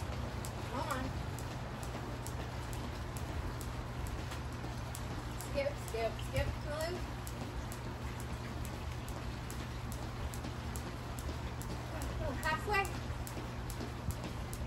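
A woman talks calmly outdoors.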